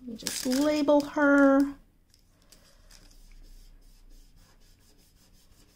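A sheet of paper rustles and crinkles.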